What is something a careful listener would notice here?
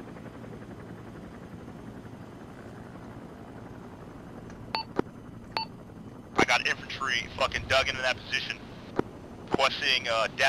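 A helicopter engine drones steadily with the low thrum of its rotor.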